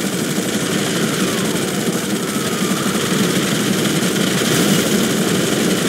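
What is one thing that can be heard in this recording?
A helicopter's rotor thumps steadily as it flies low overhead.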